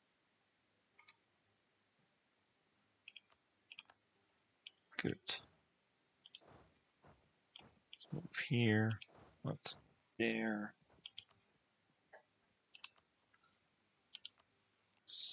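Soft interface clicks sound now and then as game menus open and close.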